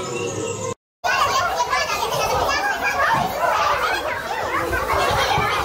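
A boy laughs and shouts nearby.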